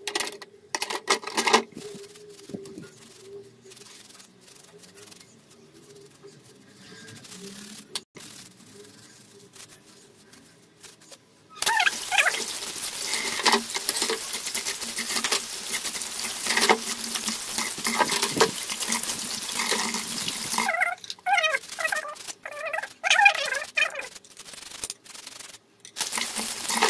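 Dishes and metal pieces clink and clatter in a sink.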